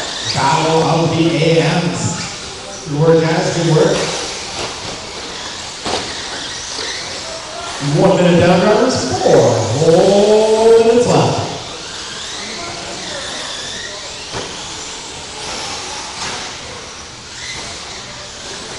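Small electric model cars whine as they race around a track.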